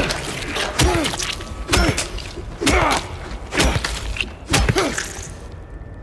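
A metal pipe strikes something with heavy, quick blows.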